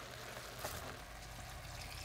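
Water pours into a pot.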